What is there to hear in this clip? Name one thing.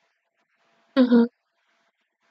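A young woman gives a short loud exclamation close by.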